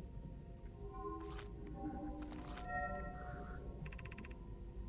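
A handheld translator device chirps with soft electronic tones.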